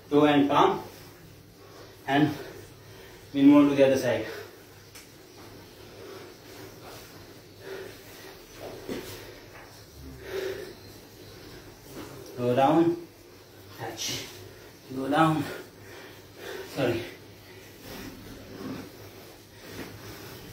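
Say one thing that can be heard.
Feet thud softly on a mat as a man jumps and lunges.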